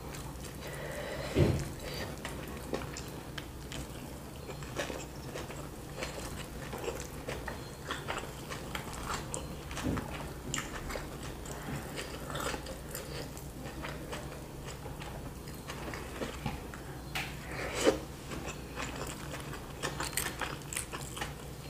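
A woman chews food with wet, crunchy mouth sounds close to a microphone.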